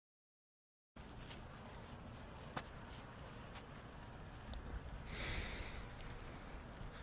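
A dog's paws crunch through snow.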